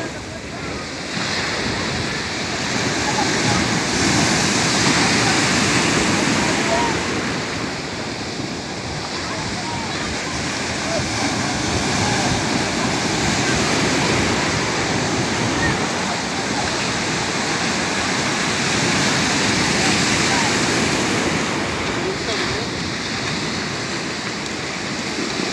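Waves crash and surge onto the shore, outdoors.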